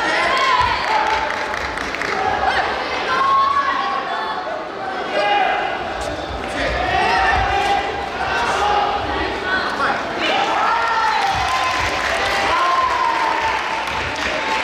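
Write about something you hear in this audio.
Bare feet squeak and shuffle on a mat.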